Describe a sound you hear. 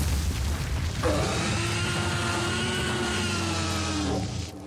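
A large beast lets out a long, loud roar.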